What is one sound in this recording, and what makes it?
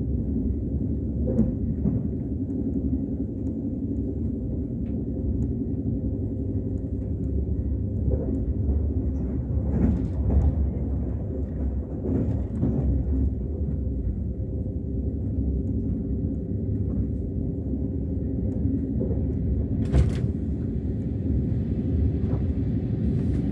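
A train hums and rumbles steadily as it rides along the tracks.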